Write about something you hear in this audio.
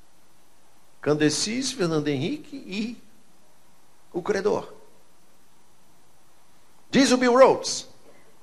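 An older man speaks with animation through a microphone, in short bursts with pauses.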